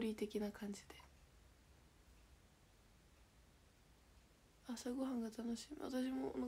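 A young woman speaks calmly and close by, pausing in between.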